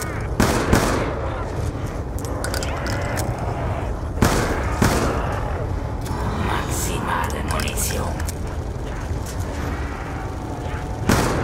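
Pistol shots crack sharply, a few at a time.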